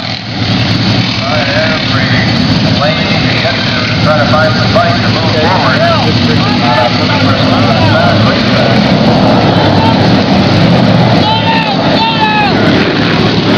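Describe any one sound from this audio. A man talks loudly over the engine noise.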